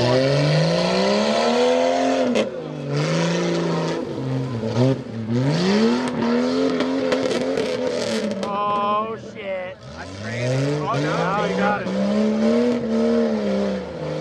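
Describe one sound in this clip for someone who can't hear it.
A truck engine roars and revs hard, rising and falling.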